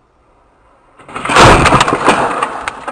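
A car crashes with a loud bang and shattering glass.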